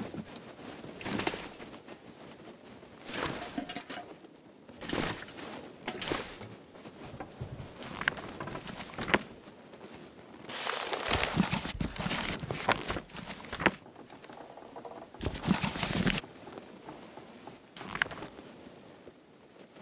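A torch flame crackles and hisses close by.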